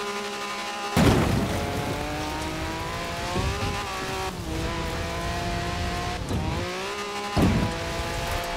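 A buggy thuds as it lands hard on the ground.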